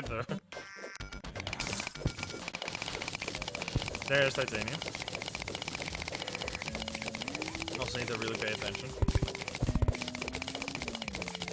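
Video game mining sounds tick rapidly and steadily.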